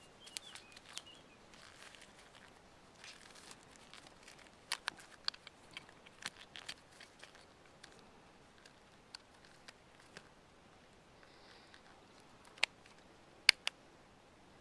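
A plastic clip clicks sharply a few times.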